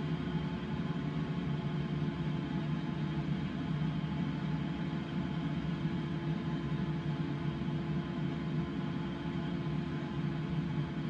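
Air rushes steadily past a glider's canopy.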